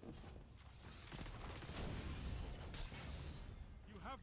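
A heavy blast booms and roars.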